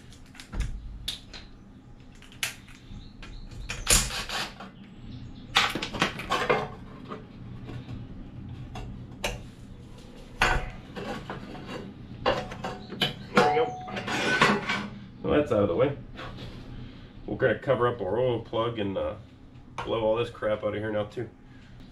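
Metal parts clink and clank as they are handled.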